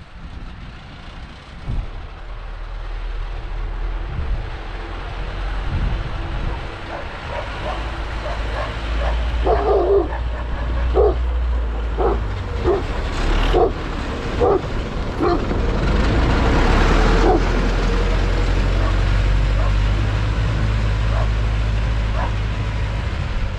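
A tractor engine rumbles, growing louder as it approaches and passes close by.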